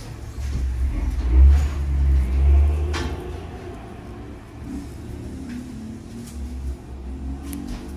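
Nail nippers snip at a toenail with small clicks.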